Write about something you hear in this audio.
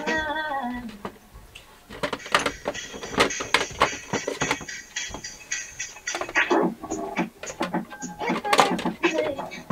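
Plastic items clatter and knock as they are handled.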